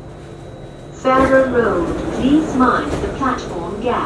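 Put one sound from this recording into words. Train doors slide open.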